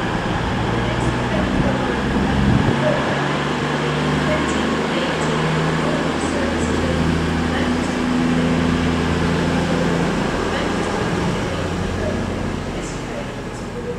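Steel wheels click and squeal faintly on the rails.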